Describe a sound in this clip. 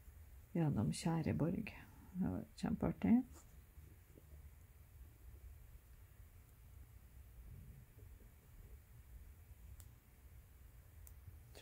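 Thread is drawn through stiff fabric with a soft rasp.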